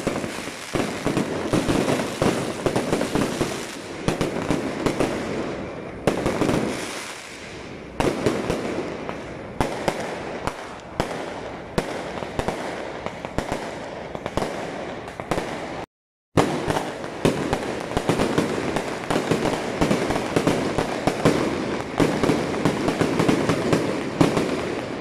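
Firecrackers crackle and bang rapidly and loudly outdoors.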